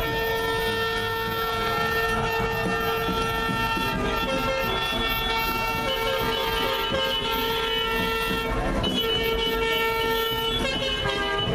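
Military trucks drive slowly past with rumbling engines.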